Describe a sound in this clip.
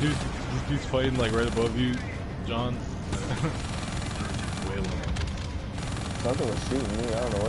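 Video game laser cannons fire in bursts.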